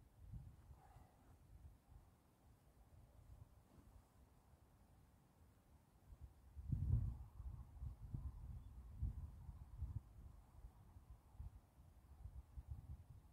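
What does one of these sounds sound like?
A golf club swishes and brushes the grass in practice swings.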